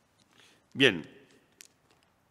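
A man clears his throat close to a microphone.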